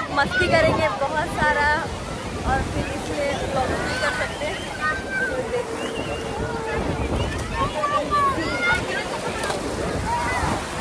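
Waves crash and wash onto the shore.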